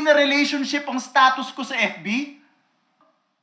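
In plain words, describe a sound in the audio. A young man speaks tearfully and chokes up, close by.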